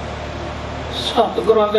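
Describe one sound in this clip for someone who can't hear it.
An elderly man speaks loudly through a loudspeaker.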